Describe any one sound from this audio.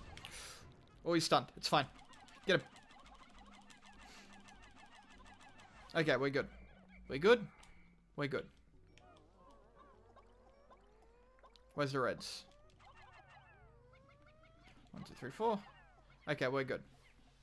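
Cartoonish game sound effects pop and squeal in short, loud bursts.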